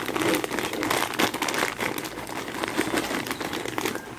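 Dry pasta rattles as it pours into a pot.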